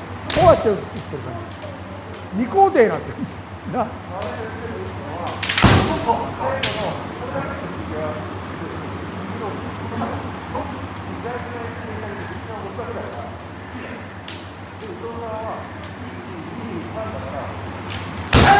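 Kendo fighters shout sharp, loud cries in a large echoing hall.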